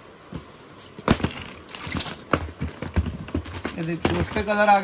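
A cardboard box lid is slid off and set down.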